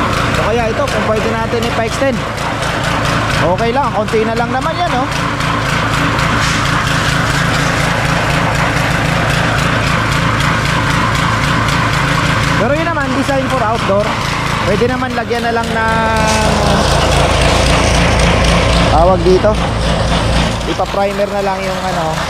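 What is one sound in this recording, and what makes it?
A cement mixer engine runs with a steady low chugging.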